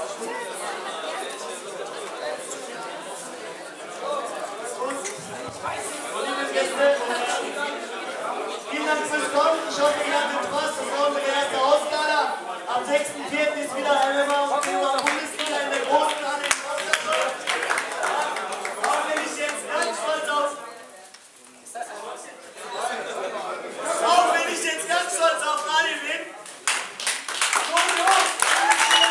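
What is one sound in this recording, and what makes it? A crowd of men and women chatter and call out loudly in an echoing hall.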